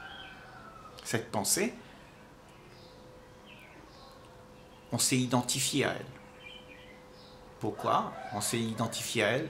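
An elderly man speaks calmly and slowly, close by.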